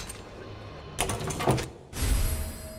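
A padlock snaps open with a metallic clunk.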